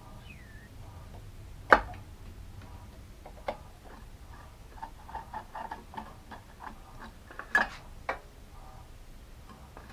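A screwdriver scrapes against metal.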